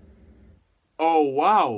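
A young man exclaims loudly and close by.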